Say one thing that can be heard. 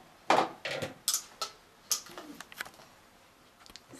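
A plug clicks into a wall socket.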